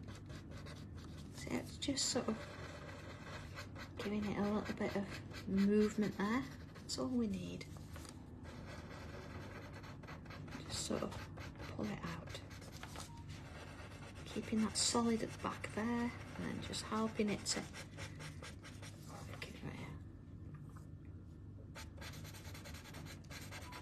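A paper blending stick rubs softly against paper.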